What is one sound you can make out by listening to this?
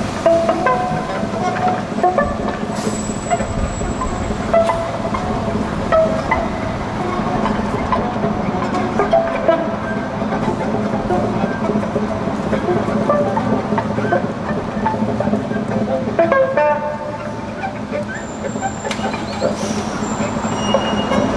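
A violin plays a melody.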